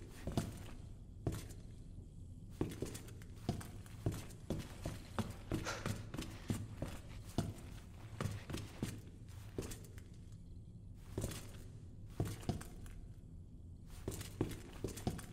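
Footsteps thud slowly across a hard floor.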